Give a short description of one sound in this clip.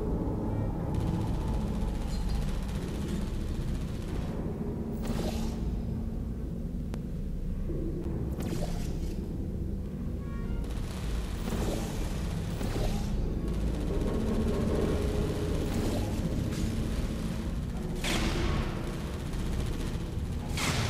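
A deep electric hum drones steadily.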